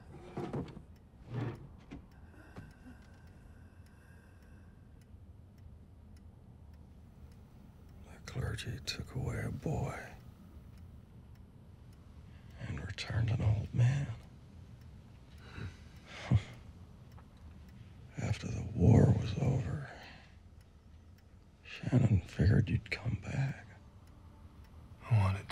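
A man speaks quietly and gravely, close by.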